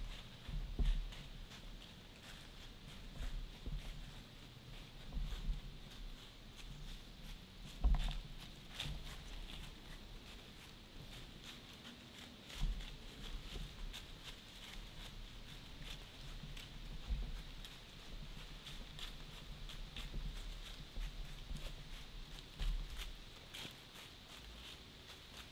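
A deer steps softly through dry fallen leaves, rustling them now and then.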